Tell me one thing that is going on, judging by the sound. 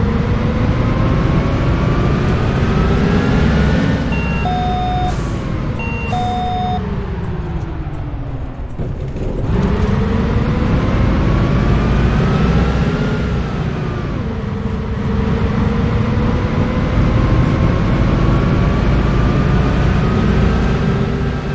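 A bus engine drones, rising and falling in pitch as it speeds up and slows down.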